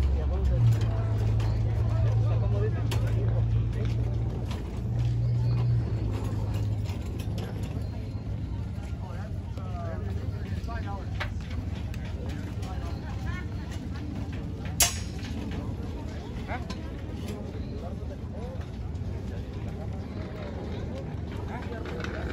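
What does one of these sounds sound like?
A crowd of people talks in a low murmur outdoors.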